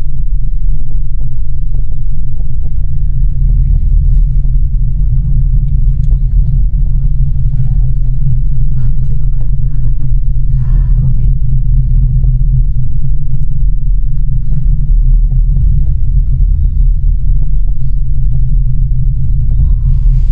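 A cable car hums and rumbles steadily as it rides along its cable.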